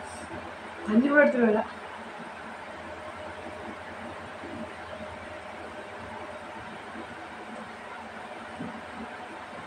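A young woman chews food with her mouth closed.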